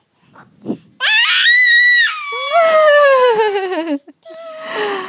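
A toddler girl squeals with laughter close by.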